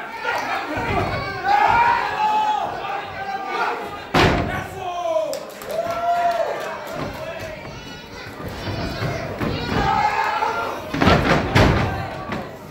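A wrestler's body slams onto the ring mat with a loud, echoing thud.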